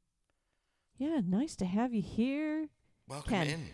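A man sings into a close microphone.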